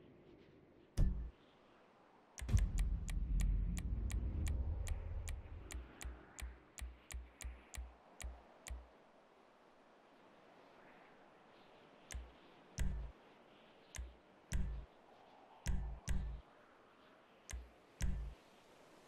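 A game menu clicks with short, quick beeps as options change.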